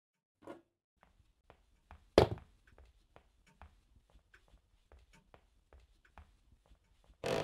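Footsteps thud steadily across a floor.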